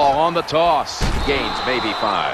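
Football players collide in a heavy tackle.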